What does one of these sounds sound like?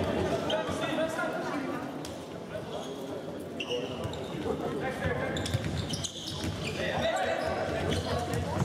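Spectators murmur and chatter in an echoing sports hall.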